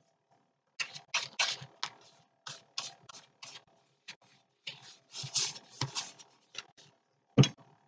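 A stiff brush dabs and scrapes on paper.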